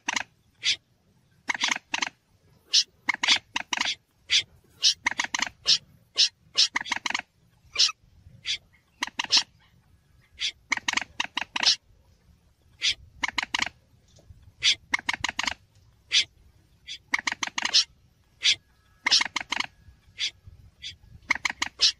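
Water birds call again and again in loud, sharp, chattering bursts.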